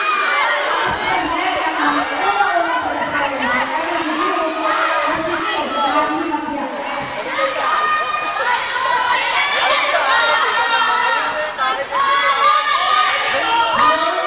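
A young woman speaks with animation into a microphone over loudspeakers.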